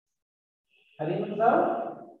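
An elderly man speaks aloud, heard through an online call.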